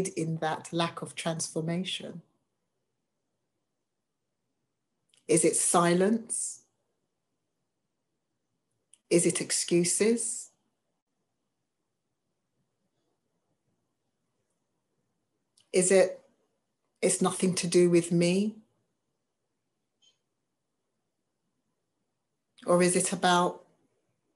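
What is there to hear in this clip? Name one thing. A woman speaks calmly over an online call, in short phrases with long pauses.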